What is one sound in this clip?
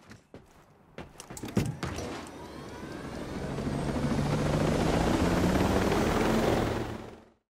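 A helicopter engine starts up and its rotor builds to a loud, steady whirring roar.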